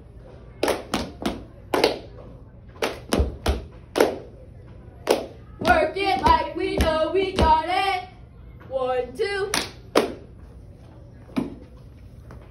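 Young girls clap their hands in a sharp rhythm.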